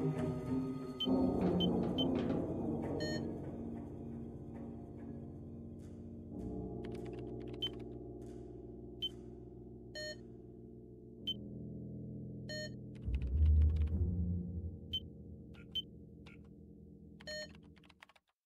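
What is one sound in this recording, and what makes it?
Short electronic blips sound as squares are clicked in a puzzle game.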